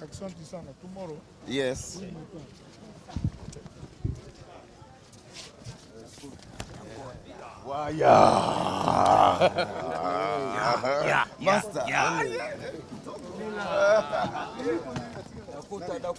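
A crowd of men talk and call out nearby.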